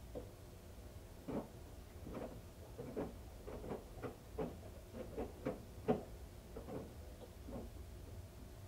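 Laundry thumps and tumbles in a washing machine drum.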